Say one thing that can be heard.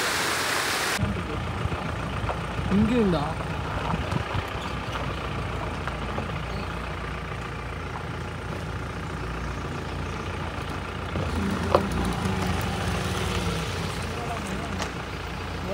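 A vehicle engine rumbles low and steadily.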